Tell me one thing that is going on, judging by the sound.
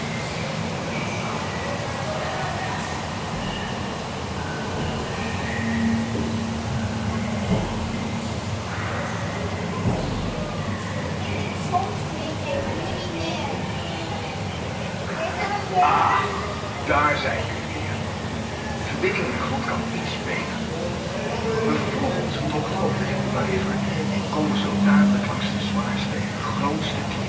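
A boat motor hums low and steadily.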